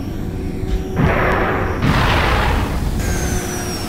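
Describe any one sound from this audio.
A jet pack roars in a short rushing burst.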